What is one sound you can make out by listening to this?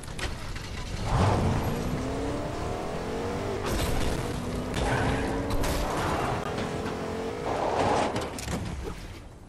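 A pickup truck engine revs and roars as it drives.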